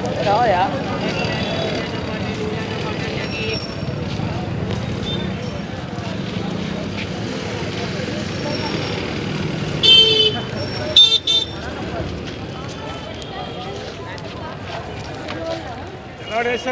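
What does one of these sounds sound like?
A busy crowd chatters and murmurs outdoors.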